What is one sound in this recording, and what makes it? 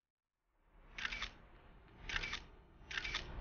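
A young woman gasps in distress.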